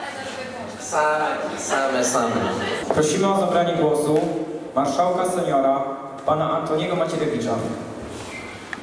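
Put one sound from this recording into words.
A young man speaks clearly into a microphone.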